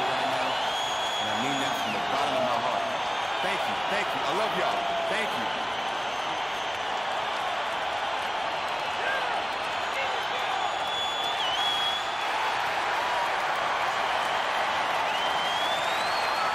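A crowd cheers and applauds loudly in a large arena.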